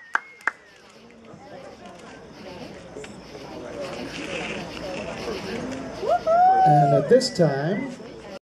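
A crowd of men and women chatters and laughs nearby.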